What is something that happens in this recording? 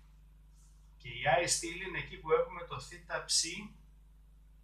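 A man explains, as in a lecture.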